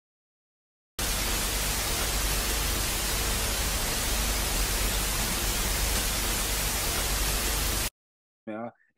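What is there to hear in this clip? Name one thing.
Static hisses loudly from a television.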